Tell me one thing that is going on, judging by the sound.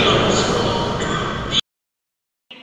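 A crowd of people sing together in a large echoing hall.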